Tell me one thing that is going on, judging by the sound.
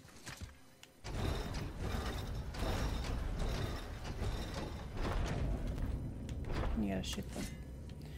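Footsteps thud on wooden rungs.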